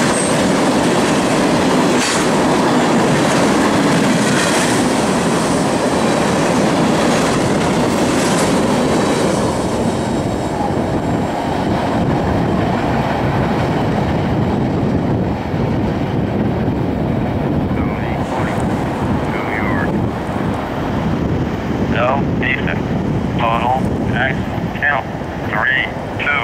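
A long freight train rumbles past close by and slowly fades into the distance.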